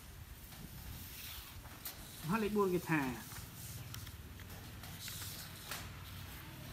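Sheets of paper rustle as they are turned over.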